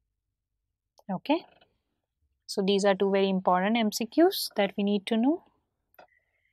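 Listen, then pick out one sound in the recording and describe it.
A woman speaks clearly and with animation into a close microphone.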